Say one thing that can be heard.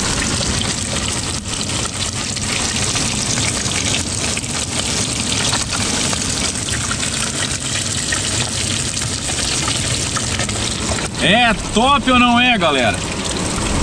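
Fish sizzles as it deep-fries in hot oil.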